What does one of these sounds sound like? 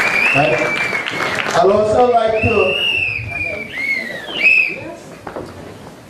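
A man sings into a microphone, heard through loudspeakers in an echoing hall.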